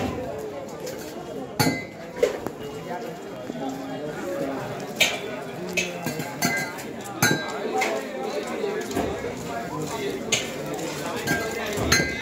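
A crowd of people chatters on a busy street.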